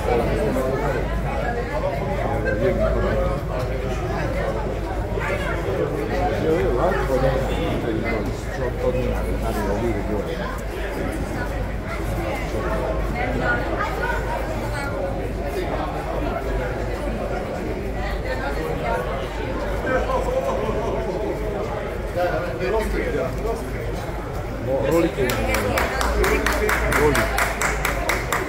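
A crowd of children and adults chatter nearby.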